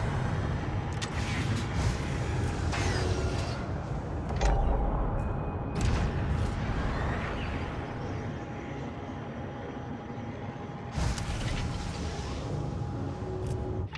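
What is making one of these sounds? A spacecraft engine rumbles low and steadily.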